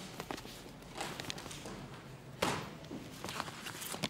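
Papers rustle and flip.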